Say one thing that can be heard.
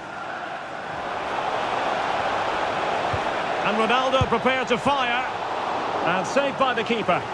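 A stadium crowd swells into a loud roar.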